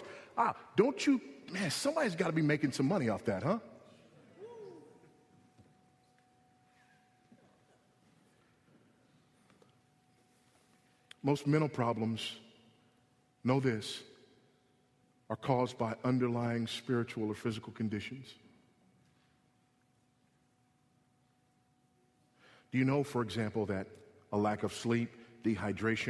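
A man preaches in a strong voice with long pauses.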